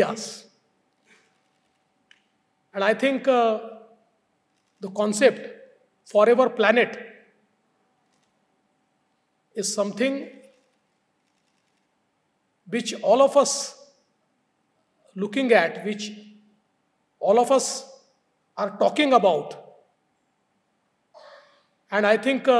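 A middle-aged man speaks calmly into a microphone, with long pauses between phrases.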